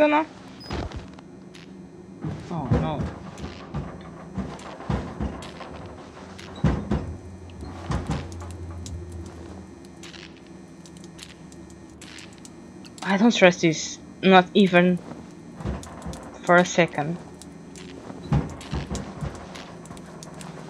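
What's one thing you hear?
A young woman talks into a close microphone, now and then with animation.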